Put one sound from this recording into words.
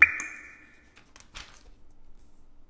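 Paper rustles as a magazine page is turned.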